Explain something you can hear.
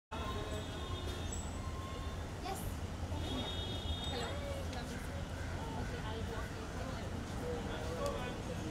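Men talk loudly nearby in a busy crowd.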